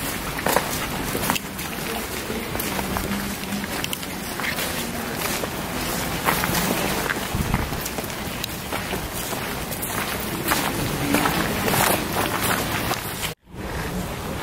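A group of people walk on gravel.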